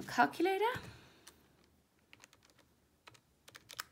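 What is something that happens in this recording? Calculator buttons click softly under a fingertip.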